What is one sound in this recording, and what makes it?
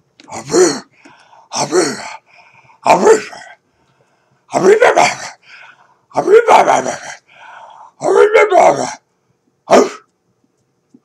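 A dog yowls and howls close by in short, rising and falling bursts.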